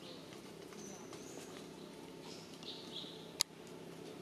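A baby macaque squeals in high, thin cries.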